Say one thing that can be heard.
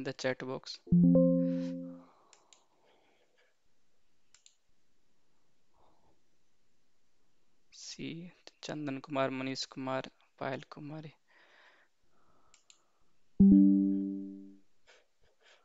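A computer alert chime sounds twice.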